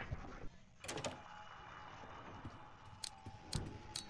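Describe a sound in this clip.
A wooden door opens with a short knock.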